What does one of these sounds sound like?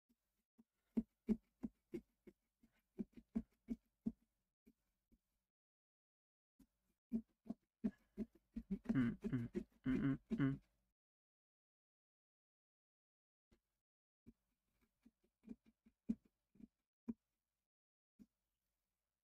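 A carving tool taps and scrapes against a pumpkin shell.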